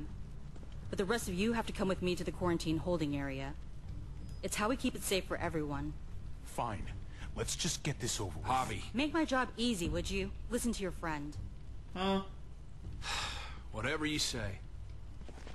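A man speaks calmly and firmly.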